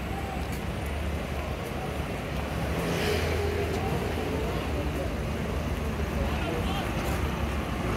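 Traffic hums steadily along a busy street outdoors.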